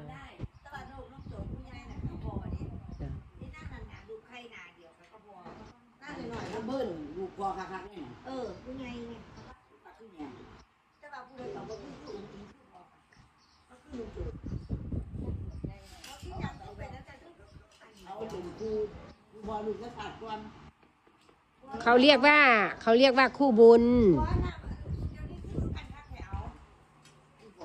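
Middle-aged and elderly women chat close by in a lively way, outdoors.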